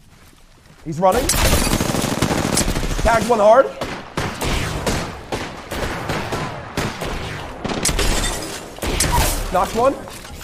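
Gunfire from a game rattles in rapid bursts.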